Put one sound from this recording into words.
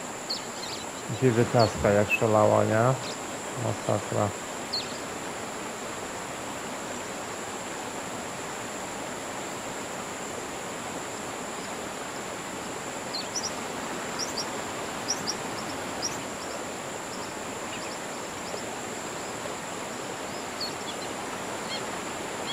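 Birds chirp over a lake.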